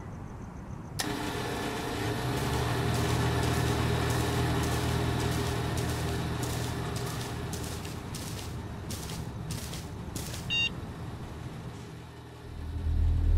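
A small generator engine sputters to life and runs with a steady droning hum.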